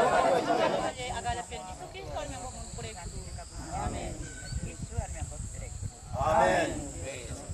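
A man speaks out loud outdoors.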